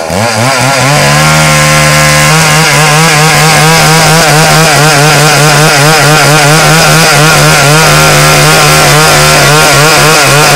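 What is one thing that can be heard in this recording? A chainsaw cuts steadily and loudly through a log.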